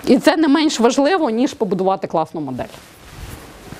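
A young woman speaks clearly into a microphone.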